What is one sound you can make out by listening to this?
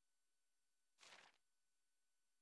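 A soft whoosh sounds as a game menu page opens.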